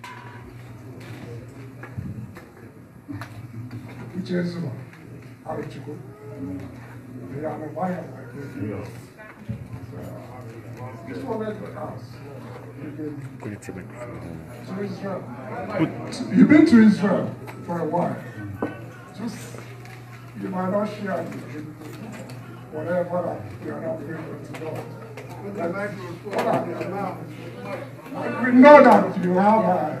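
A man speaks loudly into a microphone over a loudspeaker in an echoing hall.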